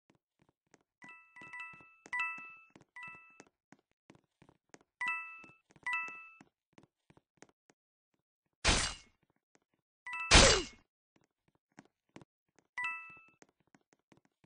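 Short bright chimes ring out as coins are picked up.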